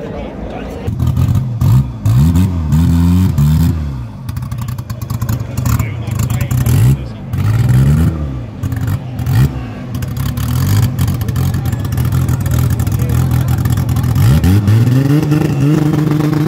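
A drag car's engine revs in loud, repeated bursts.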